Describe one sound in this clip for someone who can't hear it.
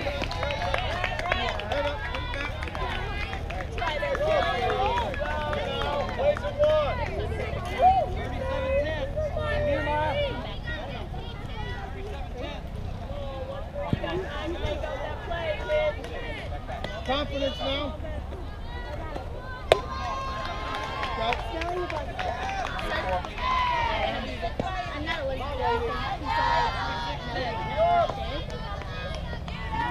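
Young girls and adults call out and cheer nearby, outdoors.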